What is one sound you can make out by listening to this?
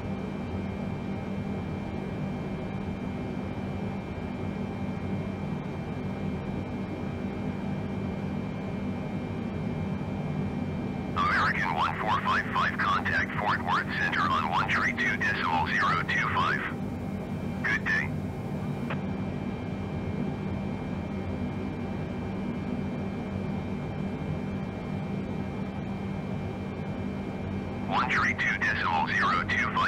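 Aircraft engines drone steadily and low.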